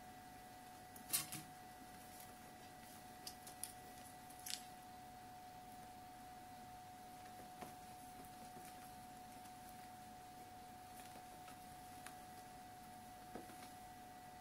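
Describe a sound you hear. A small kitten scuffles and thumps against a soft toy on a hard ledge.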